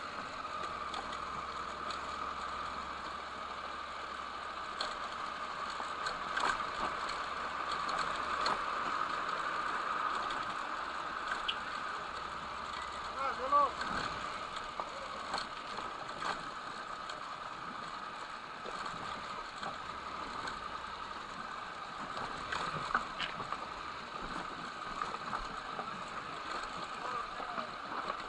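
A motorcycle engine runs steadily close by.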